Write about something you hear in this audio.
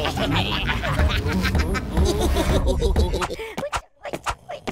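A cartoon character laughs wildly.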